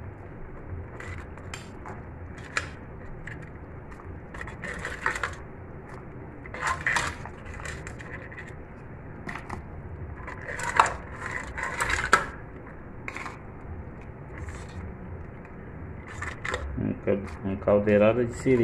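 A metal spoon clinks and scrapes against a pot while stirring.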